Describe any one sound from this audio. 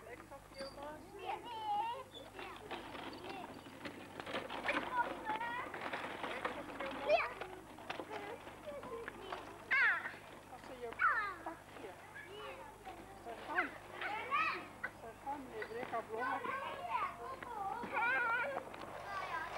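A toddler babbles close by.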